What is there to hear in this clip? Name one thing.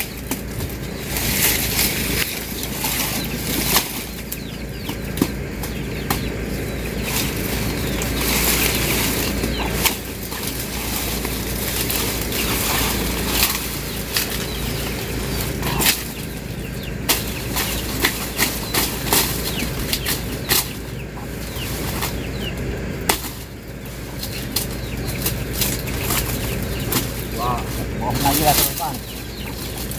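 Sugarcane stalks are chopped with sharp knocks.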